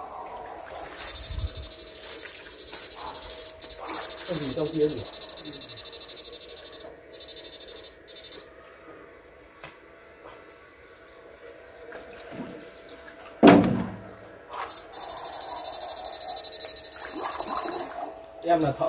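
An electric fishing device buzzes with a fast, pulsing whine.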